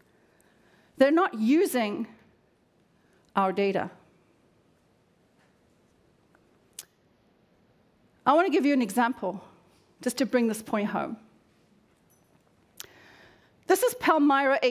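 A woman speaks calmly into a headset microphone in a large hall, with pauses between phrases.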